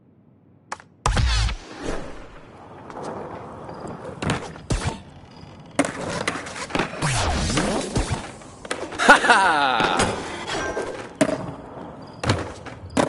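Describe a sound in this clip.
Skateboard wheels roll and clatter on ramps and rails in a video game.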